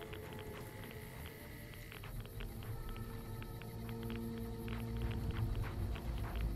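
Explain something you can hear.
Footsteps crunch on gravel in a video game.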